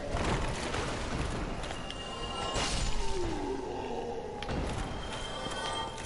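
Metal swords clash and strike in a fight.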